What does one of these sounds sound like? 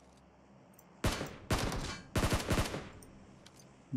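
An assault rifle fires a rapid burst of shots.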